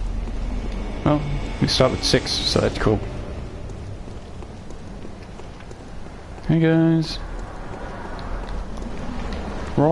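Footsteps clatter on cobblestones.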